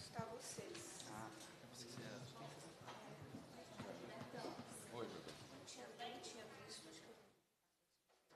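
Several people chat quietly in a room.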